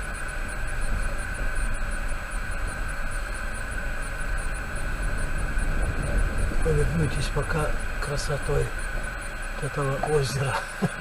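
A car engine rumbles as the car rolls slowly.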